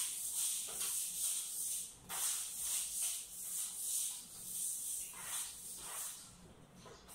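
A mop swishes back and forth across a floor.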